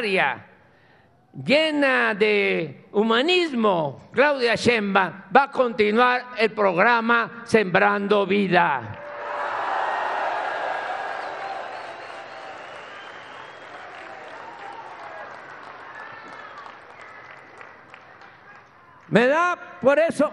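An elderly man speaks emphatically through a microphone and loudspeakers.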